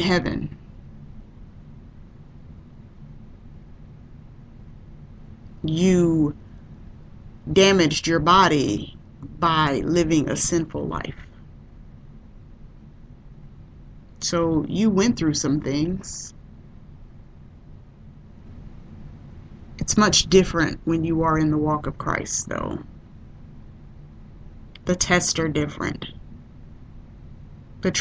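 A woman speaks calmly into a microphone, in short phrases with long pauses.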